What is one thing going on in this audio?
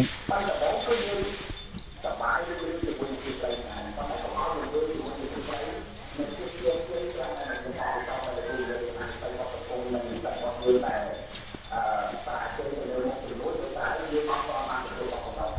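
Fresh grass rustles as a man lifts and handles bundles of it.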